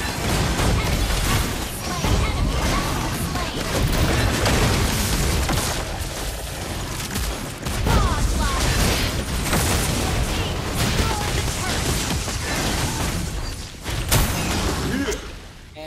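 Game sound effects of spells and hits clash and burst rapidly.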